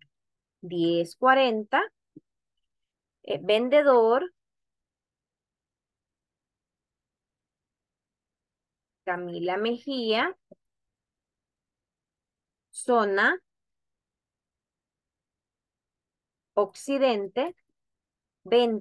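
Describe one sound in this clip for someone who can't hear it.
A woman speaks calmly into a close microphone, in short phrases with pauses.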